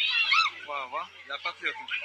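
A crowd of people talks and calls out outdoors.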